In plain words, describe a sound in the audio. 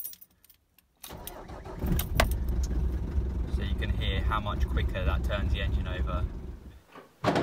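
A car engine starts and runs with a low, steady rumble.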